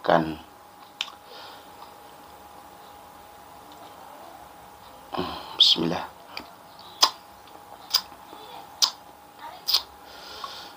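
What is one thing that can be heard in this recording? A spoon clinks and scrapes against a small jar.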